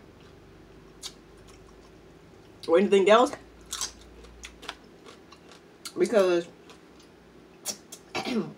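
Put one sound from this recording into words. A young woman smacks her lips while eating.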